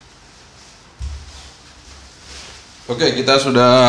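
A chair scrapes and thumps as a man sits down.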